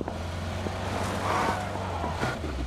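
Tyres skid on gravel.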